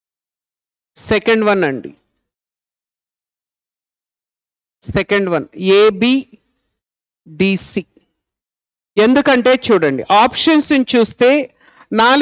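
A man speaks clearly and calmly into a microphone, in short bursts with pauses.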